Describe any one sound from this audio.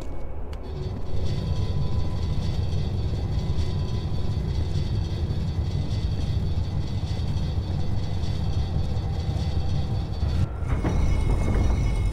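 A metal cage rolls and rumbles on stone.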